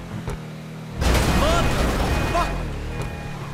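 Cars crash together with a loud metal crunch.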